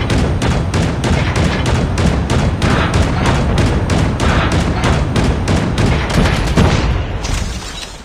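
Rockets and heavy guns boom in rapid bursts.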